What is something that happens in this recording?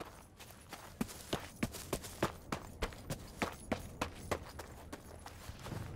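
Footsteps quicken into a heavier run.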